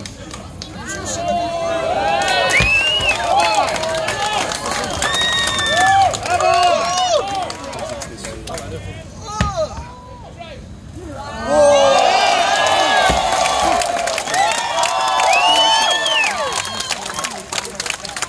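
A crowd outdoors cheers and shouts encouragement.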